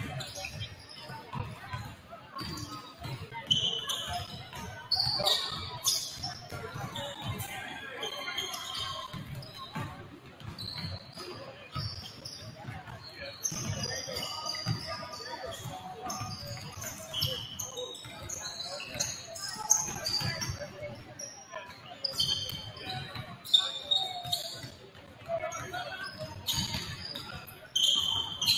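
Basketballs bounce on a hard floor in a large echoing gym.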